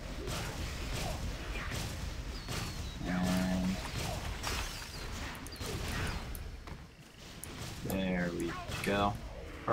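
Fiery blasts crackle and boom.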